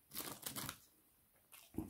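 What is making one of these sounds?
Paper rustles up close.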